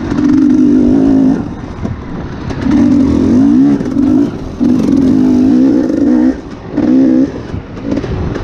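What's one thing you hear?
Tyres crunch over dirt and dry leaves.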